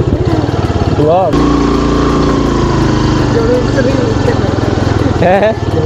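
A motorcycle engine revs up briefly.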